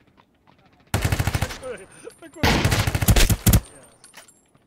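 Rapid bursts of gunfire ring out loudly.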